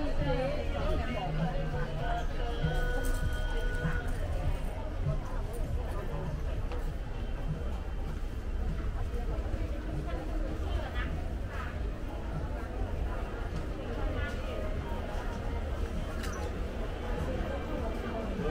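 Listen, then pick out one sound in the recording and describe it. A crowd murmurs in an indoor hall.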